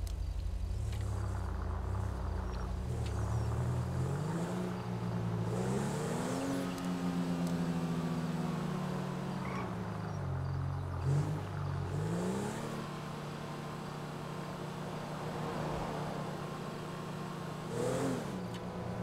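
A car engine revs and rises in pitch as the car speeds up, dropping with each gear change.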